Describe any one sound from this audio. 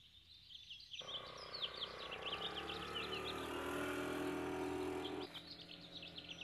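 A motor scooter engine hums as it drives past.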